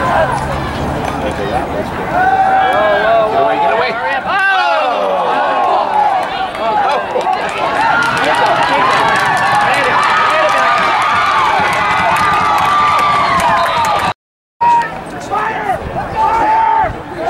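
A crowd on the sidelines cheers and shouts outdoors.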